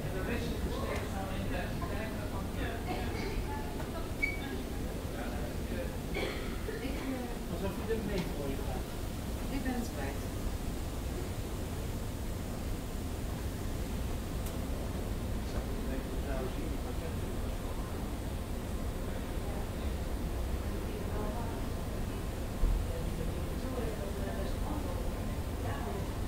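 An escalator hums and rumbles steadily in a large echoing hall.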